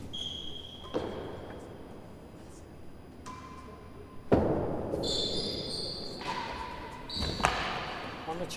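A racket strikes a ball with a sharp crack in an echoing hall.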